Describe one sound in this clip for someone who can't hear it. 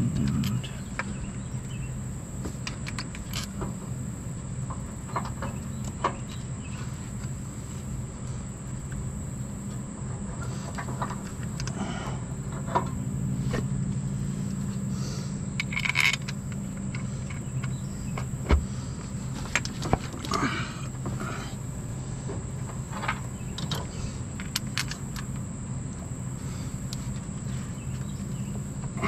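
Metal parts clink and tap softly.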